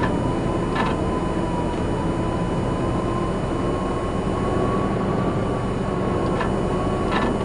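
Machinery hums steadily with a thin whine.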